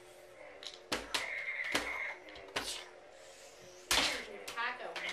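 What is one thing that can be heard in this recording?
Plastic toy swords clack together.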